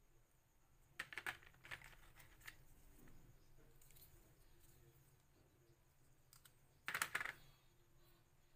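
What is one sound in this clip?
Small plastic parts clatter and knock as they are handled.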